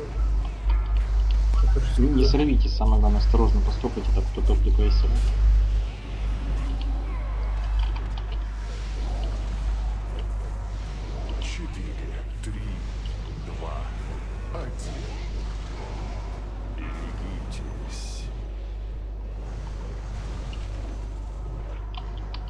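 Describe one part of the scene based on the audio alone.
Magic spells crackle and whoosh in a fantasy battle.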